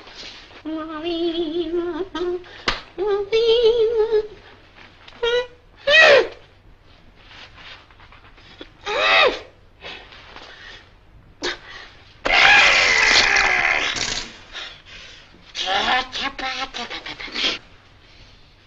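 A middle-aged man hums a tune and grunts with strain.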